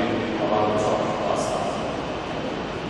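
A brass band holds a final chord that fades away.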